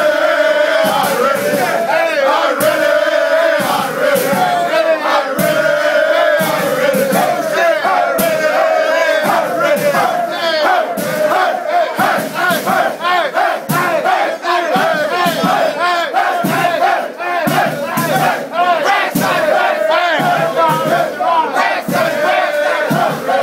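Hands clap sharply among the crowd.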